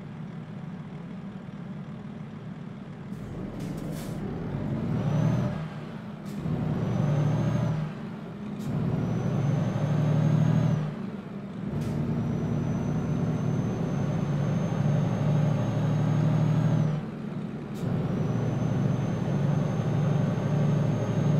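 A truck engine hums and revs up, dropping briefly at each gear change.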